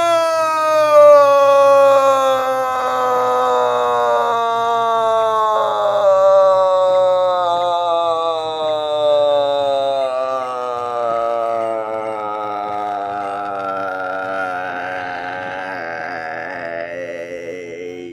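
Soft electronic game music plays steadily, slowly drifting lower in pitch.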